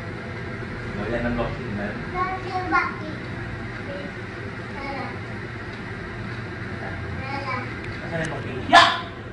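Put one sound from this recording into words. A man talks playfully to a small child nearby.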